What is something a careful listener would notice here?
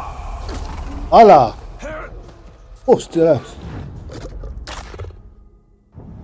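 A large beast snarls and roars.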